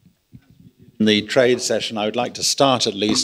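An elderly man speaks calmly into a microphone, heard through loudspeakers in a large room.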